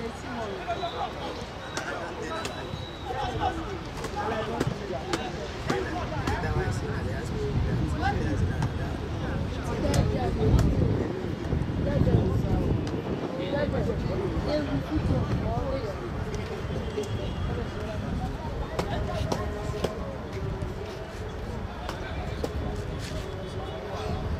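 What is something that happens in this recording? Many voices shout and chatter outdoors across an open field.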